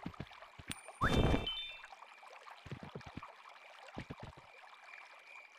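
A horse's hooves thud softly on the ground.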